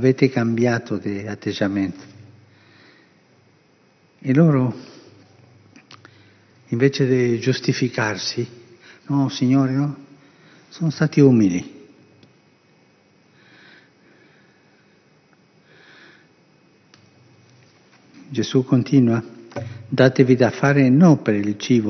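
An elderly man speaks slowly and calmly into a microphone, with long pauses, in an echoing room.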